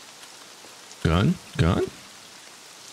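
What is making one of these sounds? A man speaks briefly and calmly into a close microphone.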